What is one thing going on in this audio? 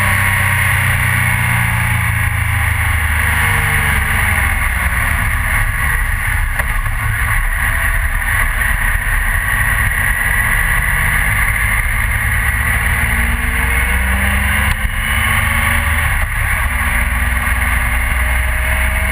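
A motorcycle engine hums steadily, its pitch slowly rising and falling.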